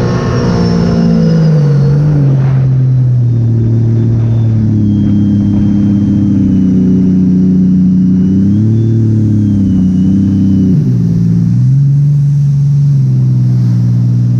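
A jet ski engine drones loudly, rising and falling in pitch.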